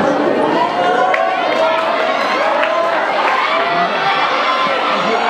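A crowd of people chatters loudly in a large echoing hall.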